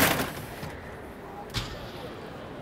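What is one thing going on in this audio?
A roll-up shutter door rattles as it is pulled.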